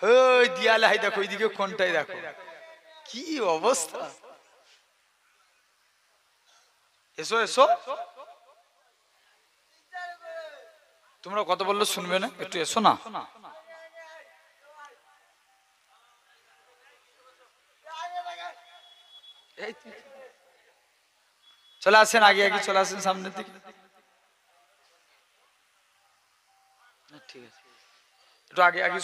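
A man sings loudly into a microphone in phrases with long pauses between them.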